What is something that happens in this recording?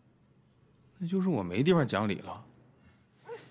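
A second man answers calmly close by.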